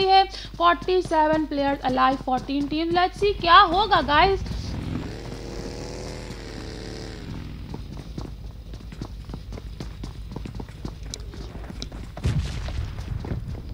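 Footsteps thud quickly on a wooden floor.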